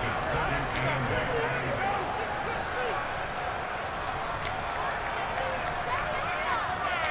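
A large stadium crowd cheers and murmurs steadily.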